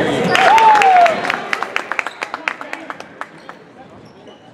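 A basketball bounces rapidly on a hard floor in a large echoing gym.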